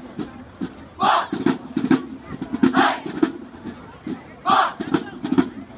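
A group of young women shout in unison outdoors.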